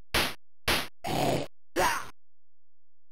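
A tiger snarls briefly.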